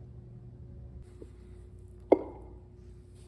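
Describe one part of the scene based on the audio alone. Metal parts clink together as they are handled.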